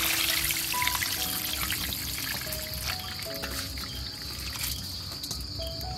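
Shredded food pours softly from a metal bowl into a wicker basket.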